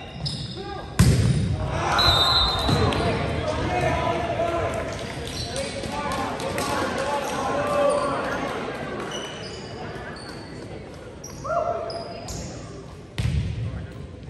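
A volleyball is struck with sharp smacks that echo through a large hall.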